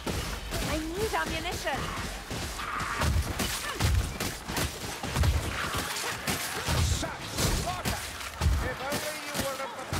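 A sword slashes and thuds into flesh.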